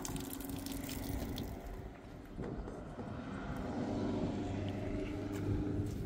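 Water runs through a hose into a tank.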